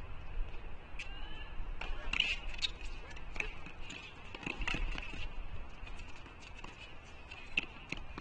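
A tennis ball is struck with sharp pops, echoing in a large indoor hall.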